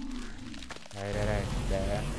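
A large creature gives a low, warbling call.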